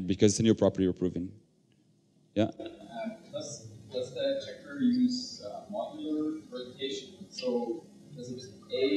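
A young man speaks with animation through a microphone in a large room.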